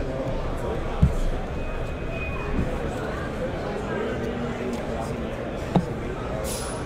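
A cardboard box knocks down onto a table.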